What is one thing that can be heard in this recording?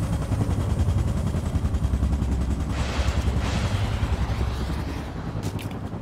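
Thumping electronic music plays loudly.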